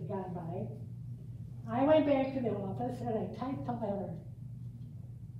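A middle-aged woman speaks calmly to a room, heard through a microphone.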